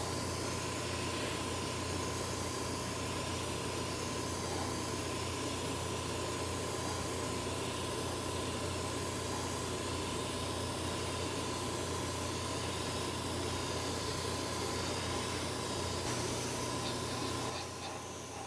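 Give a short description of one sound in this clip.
An airbrush hisses as it sprays paint.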